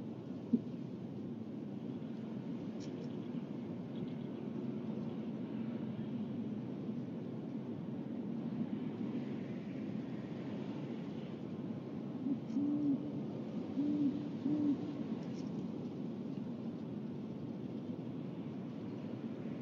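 Feathers rustle as an owl shifts in its nest.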